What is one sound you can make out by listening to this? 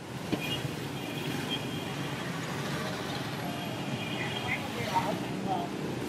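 Motorbike engines hum as scooters pass through the rain.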